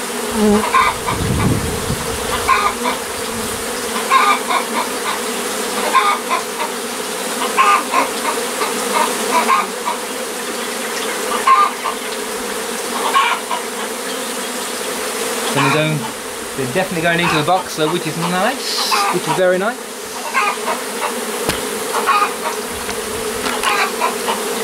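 Bees buzz steadily in a thick, droning swarm close by.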